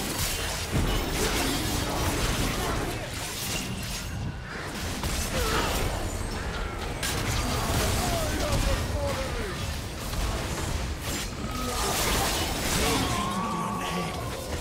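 Magic blasts and weapon hits clash rapidly in a fantasy battle.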